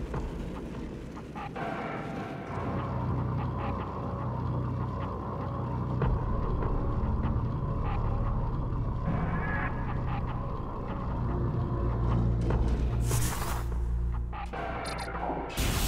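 A rolling metal ball hums and whirs along.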